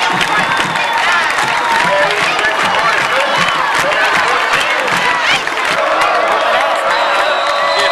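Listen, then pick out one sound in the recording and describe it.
A crowd of young men cheers and shouts excitedly outdoors.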